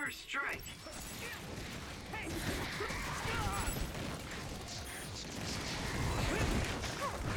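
Blades clash and slash in a fast fight.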